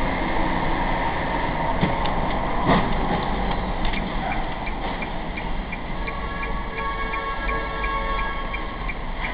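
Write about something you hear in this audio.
A car engine hums steadily in an echoing tunnel.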